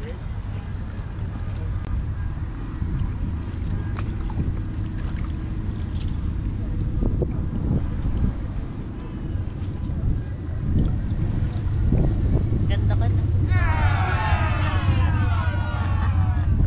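Water laps gently against a stone edge.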